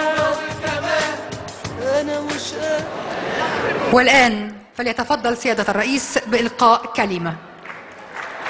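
A crowd of young people sings together over loud music.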